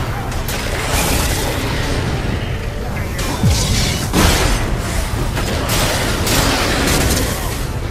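Blades swing and strike in a fierce fight.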